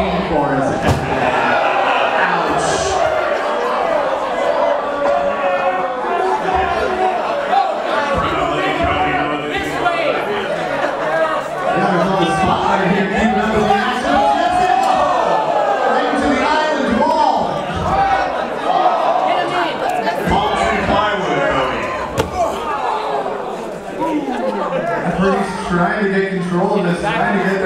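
A crowd shouts and cheers loudly in an echoing room.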